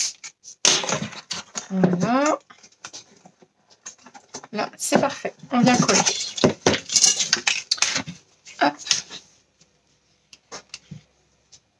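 Stiff cardboard rustles and taps as hands handle it.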